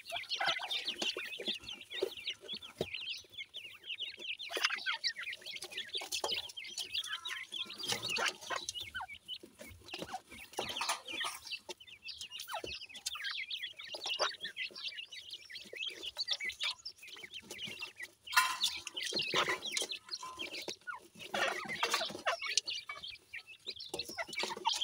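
Small birds chirp and cheep rapidly close by.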